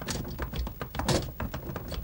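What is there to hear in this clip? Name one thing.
Wooden cart wheels rumble and creak.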